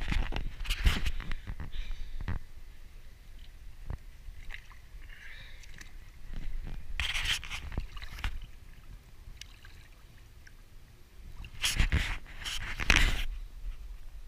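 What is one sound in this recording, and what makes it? Water splashes and laps close by.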